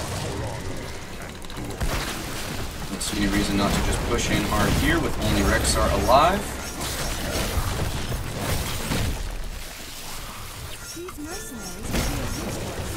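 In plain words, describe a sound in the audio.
Fighting sounds clash and blast with bursts of magic.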